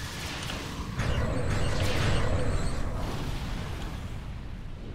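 An energy blast erupts with a loud whooshing roar.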